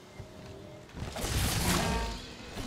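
A large creature roars loudly.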